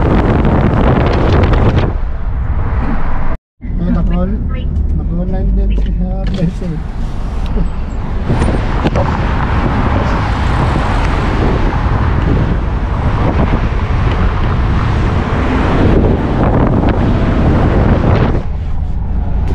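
Wind and road noise roar steadily past a moving vehicle.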